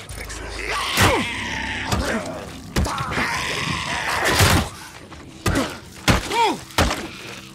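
A club strikes a body with heavy thuds.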